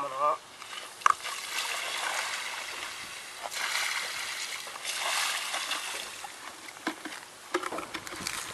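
Water splashes as it is poured from buckets onto dry soil.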